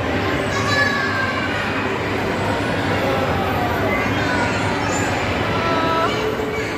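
A swinging ride's motor hums steadily.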